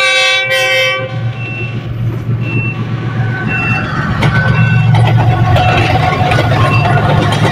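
A diesel locomotive engine rumbles deeply as it passes close by.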